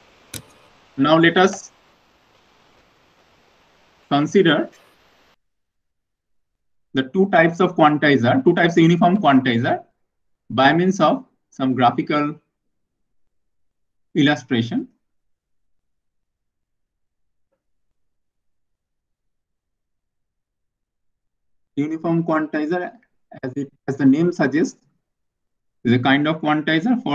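A man speaks calmly into a microphone, explaining in short bursts with pauses.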